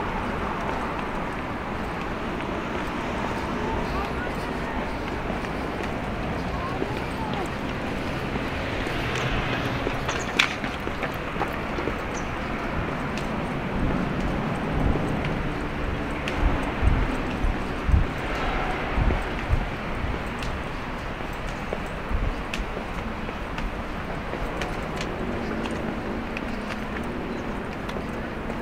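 Footsteps tread on a paved path close by.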